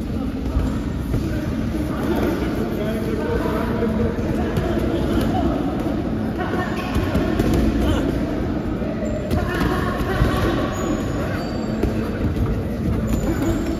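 Shoes shuffle and squeak on a canvas floor.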